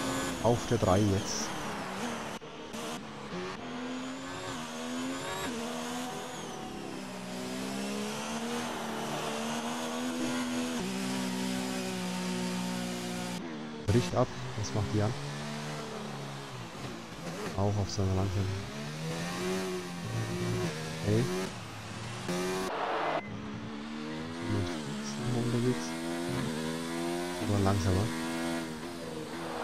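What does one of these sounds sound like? A racing car engine screams, rising and falling in pitch as the gears shift.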